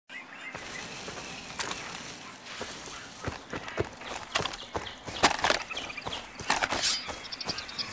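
Footsteps tread on soft ground.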